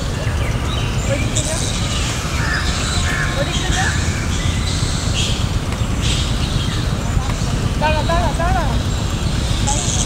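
A few women chat faintly in the distance.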